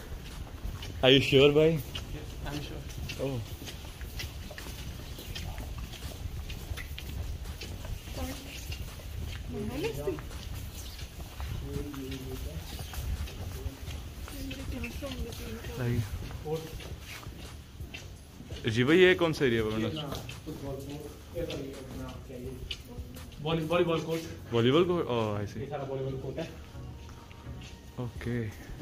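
A young man talks with animation close by, in a lightly echoing hall.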